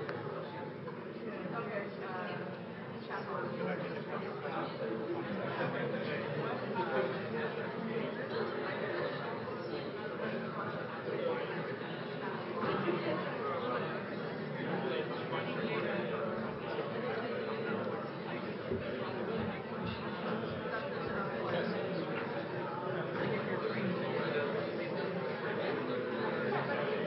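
A woman speaks steadily through a microphone.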